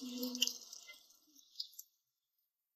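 Water pours and splashes onto a wooden step.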